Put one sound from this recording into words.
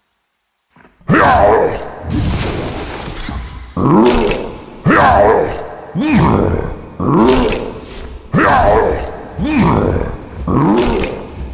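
Magic blasts whoosh and boom in loud repeated surges.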